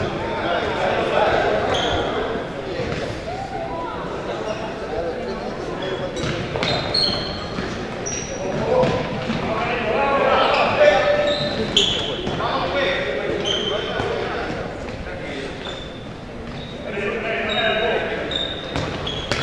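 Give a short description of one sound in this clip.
Men shout and call out across a large echoing hall.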